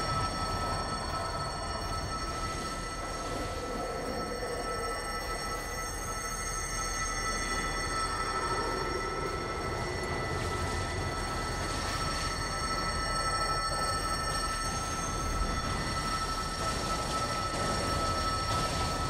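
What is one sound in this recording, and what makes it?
Magical energy crackles and hums steadily.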